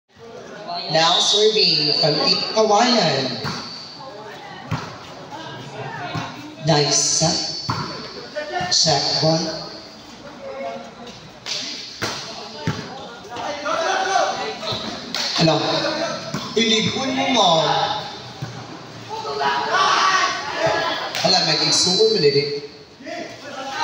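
Voices of a crowd shout and cheer loudly.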